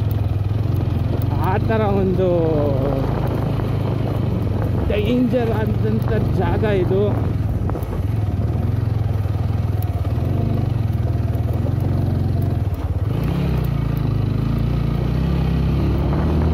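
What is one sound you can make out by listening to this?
A motorcycle engine rumbles steadily at low speed.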